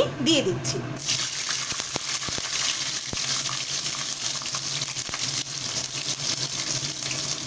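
Hot oil sizzles loudly in a pan.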